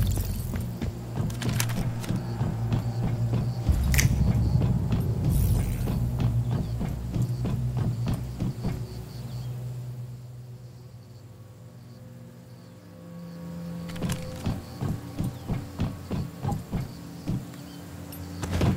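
Footsteps clang on metal stairs and grating.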